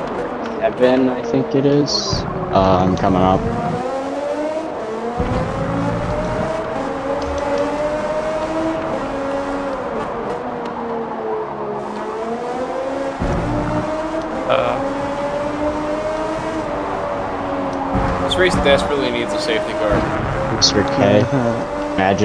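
A racing car engine roars and whines as it revs up and down through the gears.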